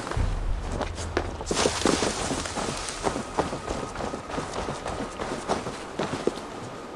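Footsteps tread steadily through grass and dirt.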